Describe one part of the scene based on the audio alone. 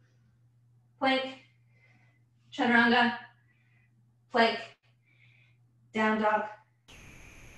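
A woman speaks calmly in short phrases, heard through an online call.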